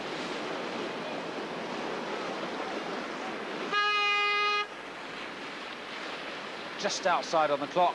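Whitewater rushes and churns loudly.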